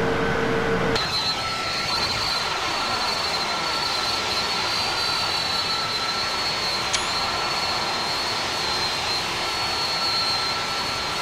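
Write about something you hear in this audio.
Jet engines roar steadily as an airliner flies past.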